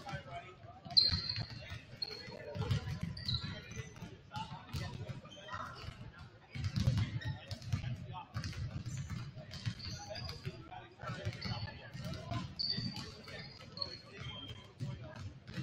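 A basketball bounces on the floor with dull thuds.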